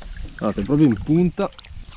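A fish splashes and thrashes at the water's surface.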